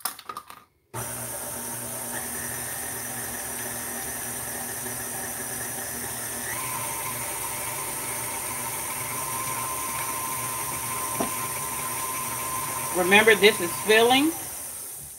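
An electric stand mixer whirs steadily.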